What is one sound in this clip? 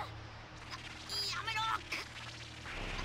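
A young man cries out in fear.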